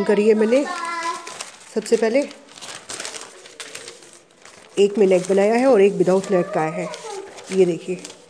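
Newspaper rustles and crinkles as it is folded.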